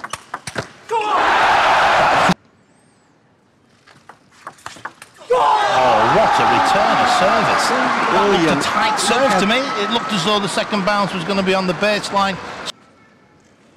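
A crowd cheers and applauds loudly in a large echoing hall.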